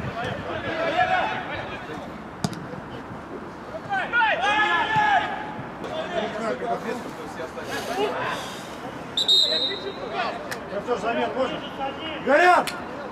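Men shout to each other across an outdoor sports field.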